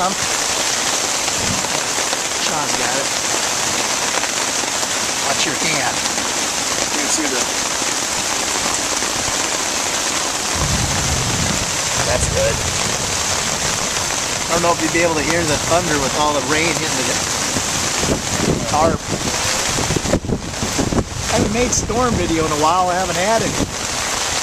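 Rain drums on a tarp overhead.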